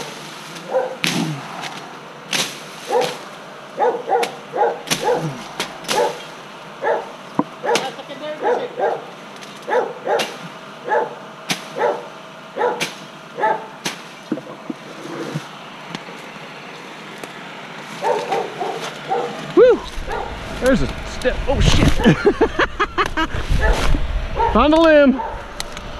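Garden shears snip through leafy vines.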